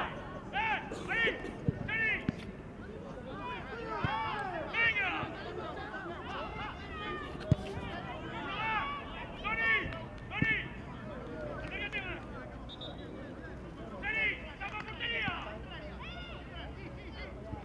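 Young players shout to each other outdoors across a field.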